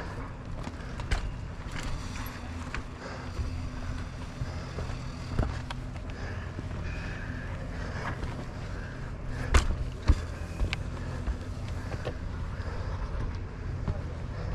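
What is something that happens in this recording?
A mountain bike rattles and clatters over a rocky dirt trail.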